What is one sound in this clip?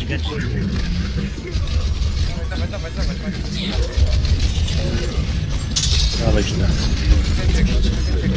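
Rapid gunfire and energy blasts crackle from a game battle.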